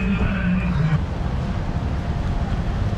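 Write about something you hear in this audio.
Rain patters steadily on an umbrella.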